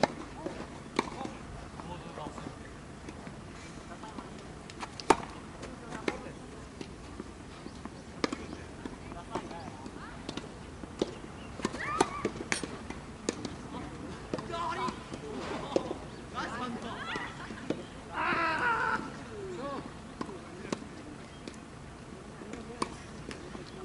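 Tennis balls are struck with a racket with sharp pops, heard outdoors.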